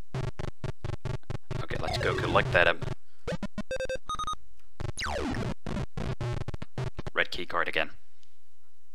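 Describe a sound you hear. Rapid electronic clicks patter as a video game character runs.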